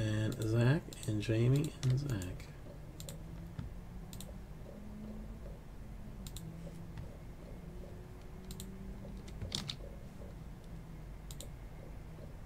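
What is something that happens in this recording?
Keys click softly on a computer keyboard.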